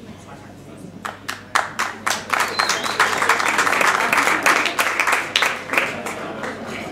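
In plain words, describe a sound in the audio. A drummer plays cymbals and drums.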